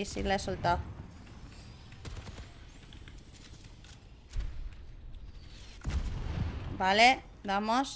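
An energy gun fires bright bursts in quick shots.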